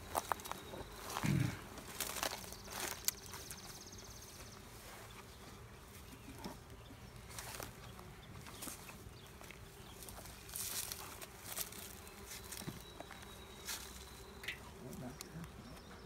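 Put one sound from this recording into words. Wooden hive boxes knock and scrape as they are handled.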